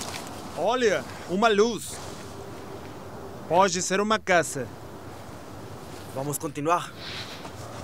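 A young man shouts out loudly outdoors.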